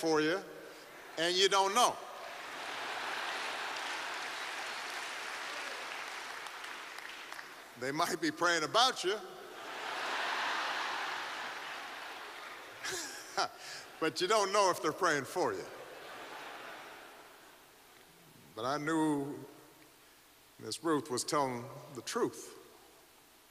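A man speaks slowly and deliberately into a microphone in a large hall.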